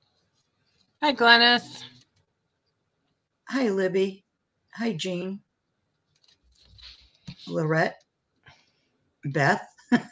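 A middle-aged woman speaks calmly over an online call, in short phrases with pauses.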